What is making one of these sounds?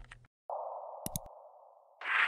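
A mouse button clicks once.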